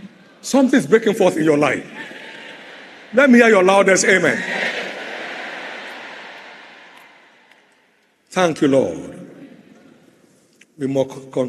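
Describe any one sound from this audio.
A man preaches loudly through loudspeakers in bursts, echoing around a large hall.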